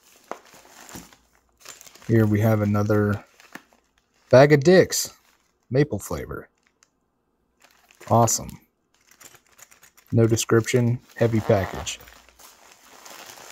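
Plastic mailing envelopes crinkle and rustle as they are handled.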